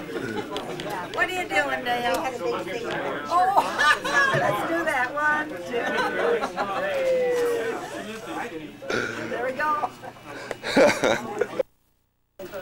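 An elderly woman talks and laughs cheerfully up close.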